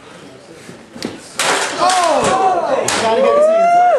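A body slams down with a heavy thud onto a padded floor.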